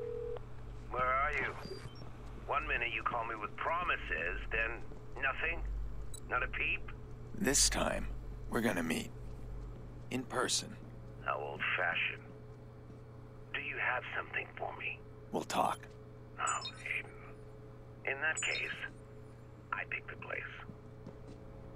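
A man speaks calmly close to a microphone.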